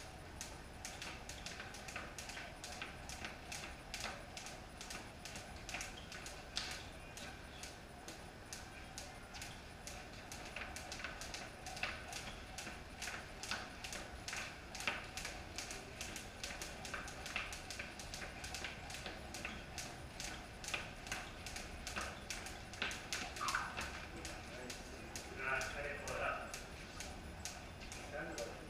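Jump ropes slap rapidly and rhythmically on a concrete floor.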